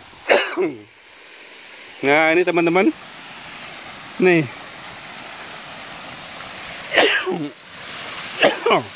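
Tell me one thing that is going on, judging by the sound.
A waterfall splashes and rushes steadily nearby.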